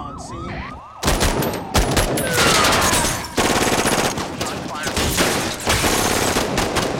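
Assault rifles fire rapid bursts of gunshots.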